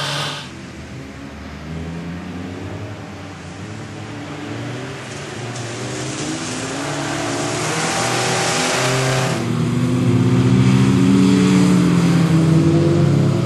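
A small car's engine revs hard and grows louder as the car approaches.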